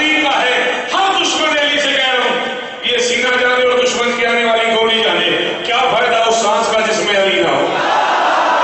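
A man declaims loudly and passionately through a microphone in an echoing hall.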